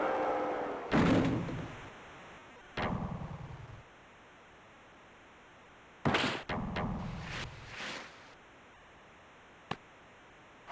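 A hockey stick slaps a puck with sharp cracks.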